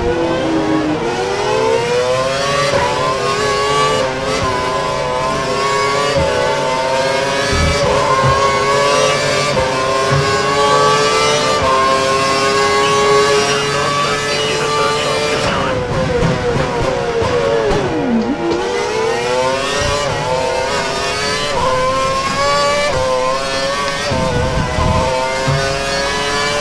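A racing car engine screams at high revs, rising through each gear and dropping sharply when braking.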